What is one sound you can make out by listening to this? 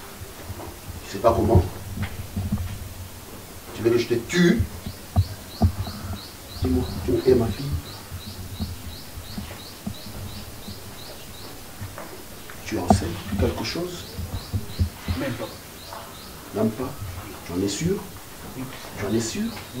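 A young woman speaks quietly, close by.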